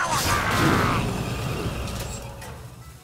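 A magical burst crackles and whooshes.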